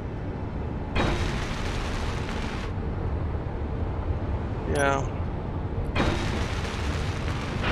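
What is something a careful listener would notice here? A welding torch hisses in short bursts.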